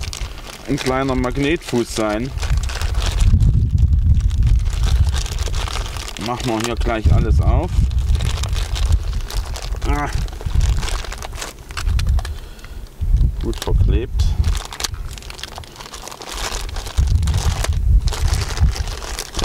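A plastic bag crinkles and rustles in someone's hands.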